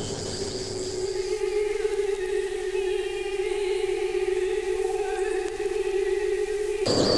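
A woman sings a long, steady held note through a microphone.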